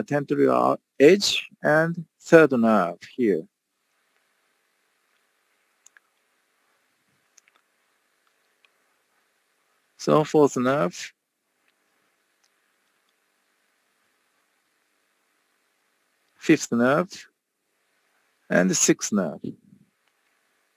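A man speaks calmly into a microphone over an online call, in short phrases with pauses.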